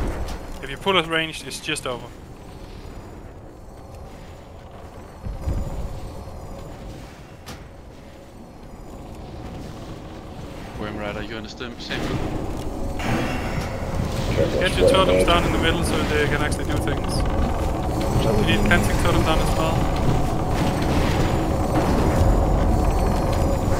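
Magic spells crackle and boom in a busy battle.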